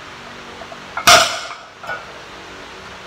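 A loaded barbell clanks down onto concrete.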